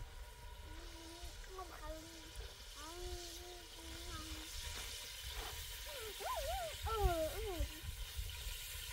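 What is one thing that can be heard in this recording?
A young girl talks nearby in a high voice.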